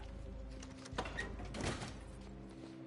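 A door bangs against a frame.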